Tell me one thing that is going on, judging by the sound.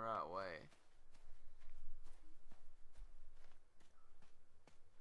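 Footsteps crunch on leaves and twigs.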